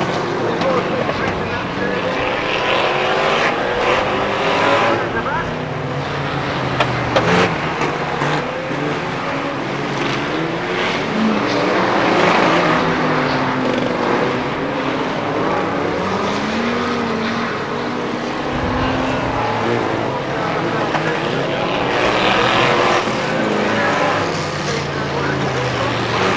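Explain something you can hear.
Racing car engines roar and rev as cars race around a track.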